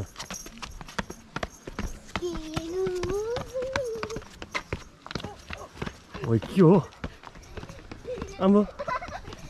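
Shoes tread on stone steps outdoors.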